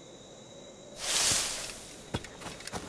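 Leaves rustle loudly as someone pushes out of a bush.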